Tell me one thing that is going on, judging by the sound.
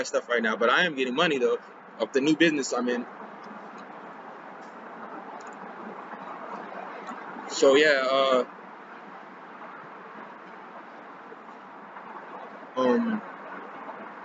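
A young man speaks close by, calmly and in short bursts.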